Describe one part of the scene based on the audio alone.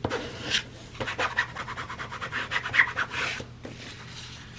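A plastic card scrapes rapidly across coarse fabric.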